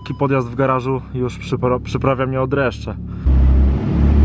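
A car engine hums while driving slowly.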